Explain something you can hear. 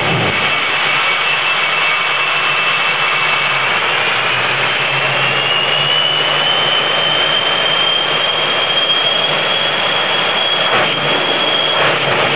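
A powerful engine roars loudly and steadily.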